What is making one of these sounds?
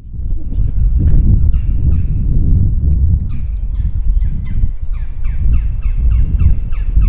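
Birds chirp in quick repeated calls.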